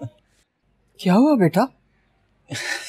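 An elderly woman asks a question calmly nearby.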